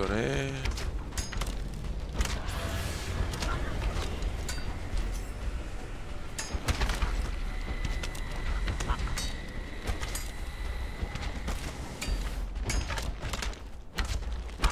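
Footsteps tap on hard stone.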